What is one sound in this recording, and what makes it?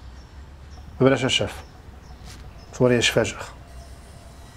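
A second man answers briefly and firmly.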